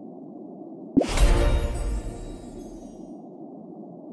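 A game chime rings out.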